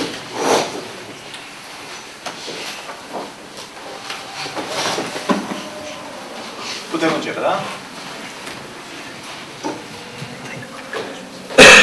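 An older man speaks calmly into microphones.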